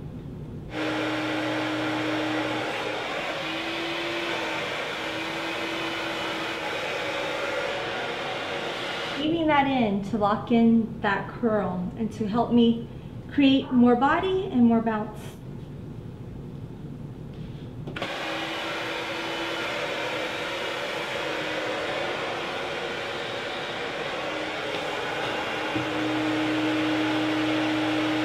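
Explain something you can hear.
A hair dryer blows with a steady roar.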